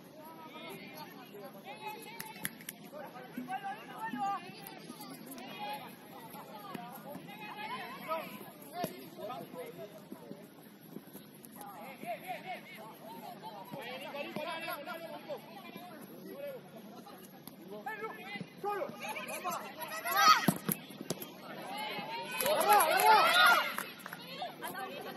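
A soccer ball is kicked with dull thuds.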